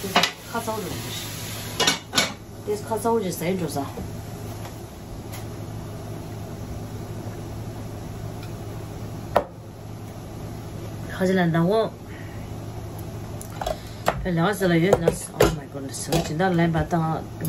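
A middle-aged woman talks calmly and close by.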